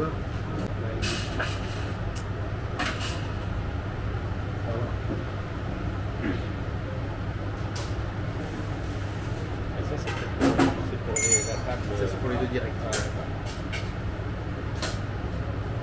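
Metal tongs tap and clink against a china plate.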